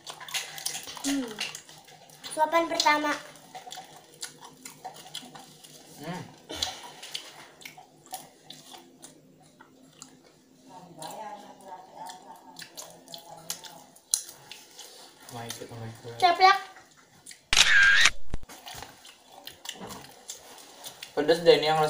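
Food crunches and smacks as people chew close up.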